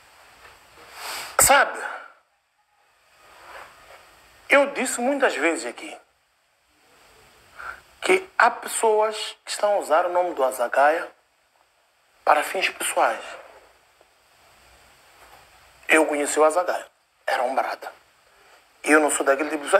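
A man speaks with animation into a close microphone, in bursts with pauses.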